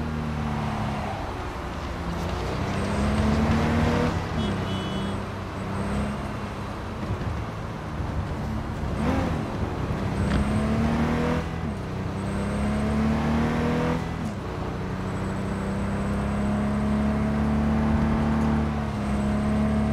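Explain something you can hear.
Car tyres screech while skidding around a corner.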